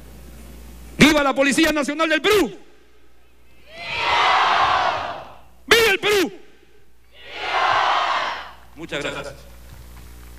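A man shouts commands through a loudspeaker outdoors.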